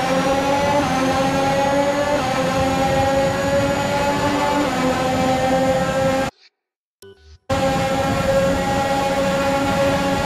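A racing car engine screams at high revs, cutting out briefly.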